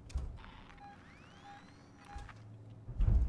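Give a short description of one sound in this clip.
A motion tracker beeps in short repeated blips.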